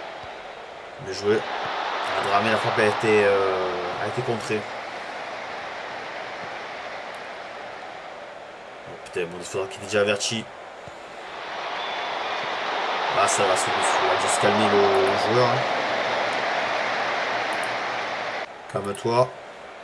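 A man speaks casually into a nearby microphone.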